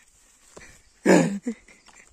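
A cow moos briefly nearby.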